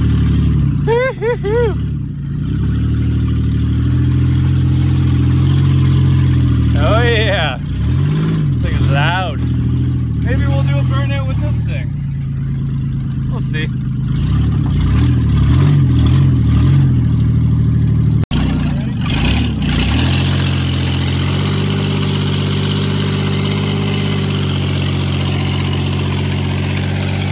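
A truck engine runs with a low, steady hum.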